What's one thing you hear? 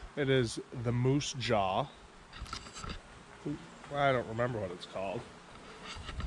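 A young man talks casually, close up.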